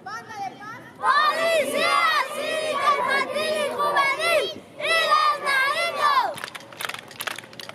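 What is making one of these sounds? A boy talks with animation close by.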